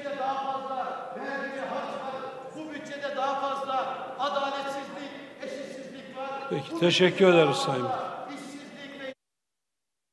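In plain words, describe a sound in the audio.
A man speaks steadily into a microphone in a large echoing hall.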